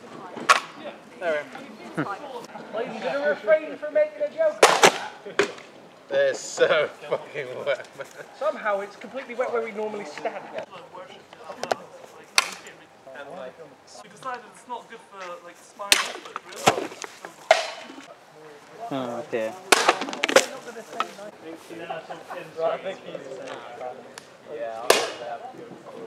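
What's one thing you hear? Gunshots crack loudly outdoors.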